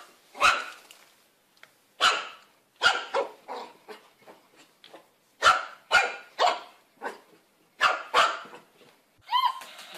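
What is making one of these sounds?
A small puppy barks sharply, again and again, close by.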